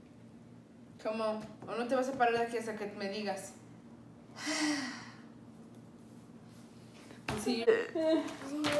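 A young woman speaks gently and encouragingly close by.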